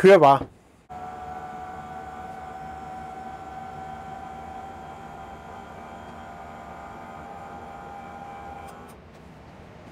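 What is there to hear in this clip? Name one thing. An electric motor hums steadily as a bed slowly lowers.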